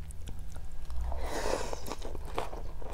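A woman slurps noodles close to a microphone.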